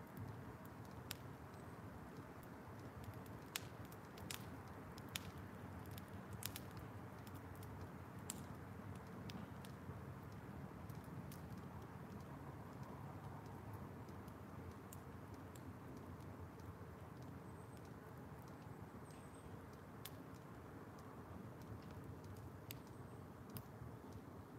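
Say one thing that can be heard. A fire roars steadily with a low rush.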